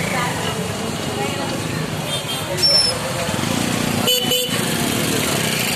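Motor scooter engines idle and rev nearby.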